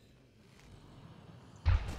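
A gun fires once.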